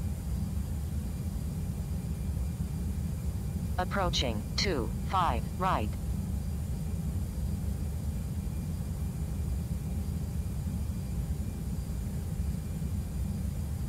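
Jet engines drone with a steady low rumble.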